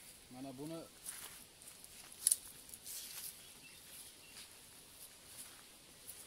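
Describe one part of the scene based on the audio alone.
Leaves rustle and brush as a man moves through them.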